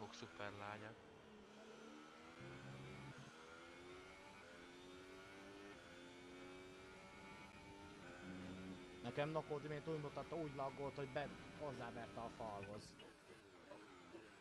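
A racing car engine whines steadily, rising and falling in pitch as the car speeds up and brakes.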